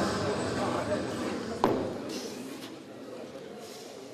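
A lifter thumps down onto a bench.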